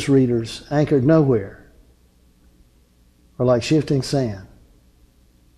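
An older man speaks clearly into a close microphone, in short phrases with pauses.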